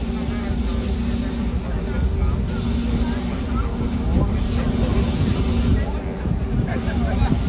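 Waves splash against rocks.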